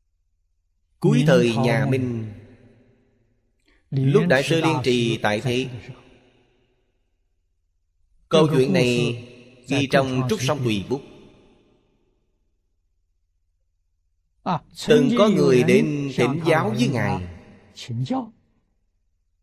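An elderly man speaks calmly and slowly into a close microphone, in short phrases with long pauses.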